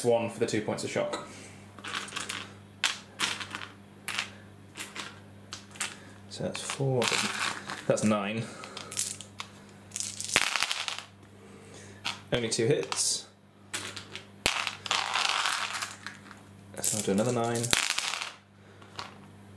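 Dice clatter and roll across a hard tabletop.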